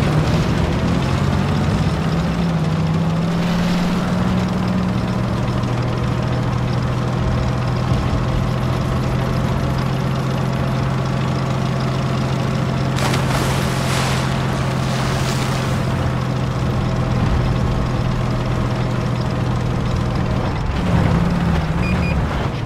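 Tank tracks rumble and clank over the ground.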